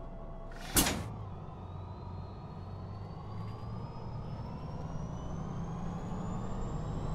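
A bus engine revs up steadily as the bus pulls away.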